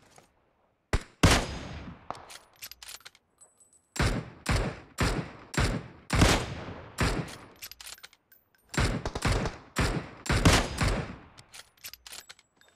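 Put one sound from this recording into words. Rifle shots crack loudly, one after another, with echoing tails.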